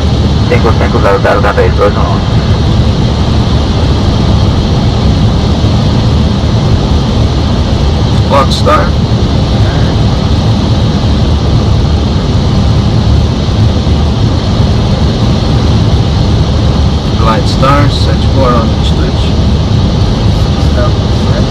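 A steady deep roar of an aircraft in flight fills the cockpit.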